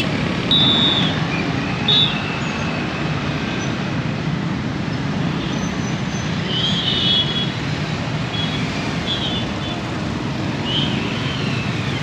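Vehicle horns honk nearby.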